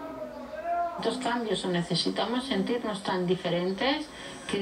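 A woman speaks calmly through a television speaker.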